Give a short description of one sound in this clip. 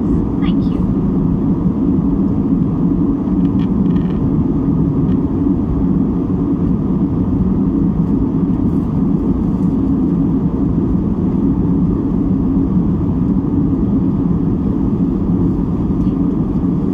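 A jet airliner's engines roar steadily from inside the cabin.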